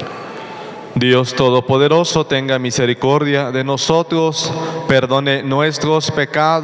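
A man sings through a microphone in a reverberant hall.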